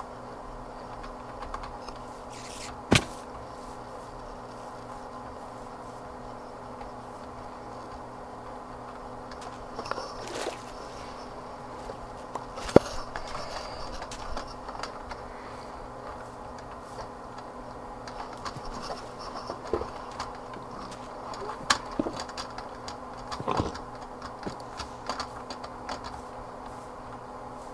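Footsteps crunch softly over grass.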